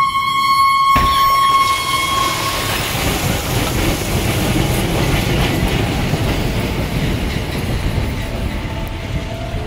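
A diesel locomotive engine roars loudly as it pulls away.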